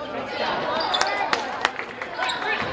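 A basketball bounces on a wooden floor with sharp thuds.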